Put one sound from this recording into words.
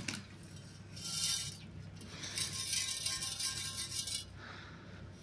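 Coarse grit rattles and hisses through a metal sieve.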